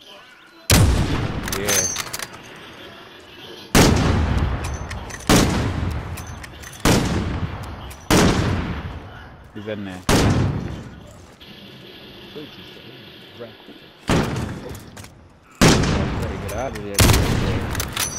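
A sniper rifle fires loud, booming shots that echo away.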